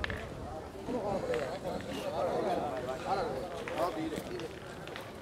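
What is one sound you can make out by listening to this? Men talk in the distance outdoors.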